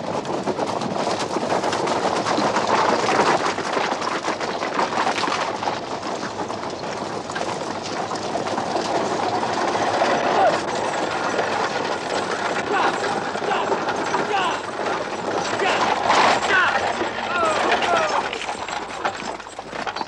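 Horses gallop on a dirt track, hooves pounding.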